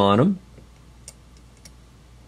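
A metal pin clicks softly into a metal holder.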